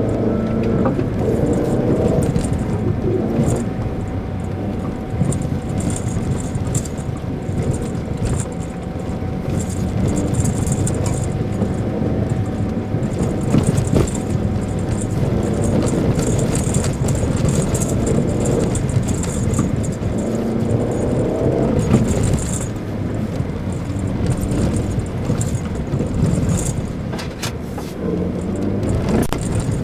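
Tyres crunch over packed snow.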